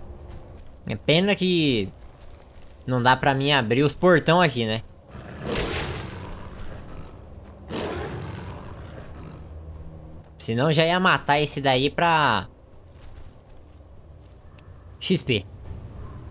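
A beast snarls and roars fiercely.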